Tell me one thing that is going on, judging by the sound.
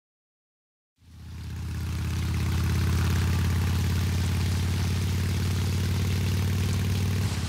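A motorcycle engine drones at speed.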